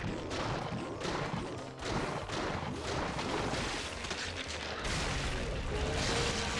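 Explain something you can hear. Heavy blows and crashes burst out in a fast battle.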